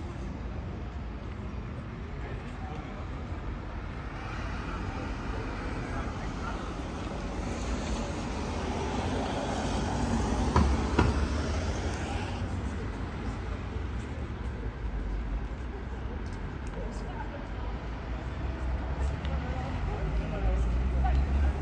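High heels click on pavement.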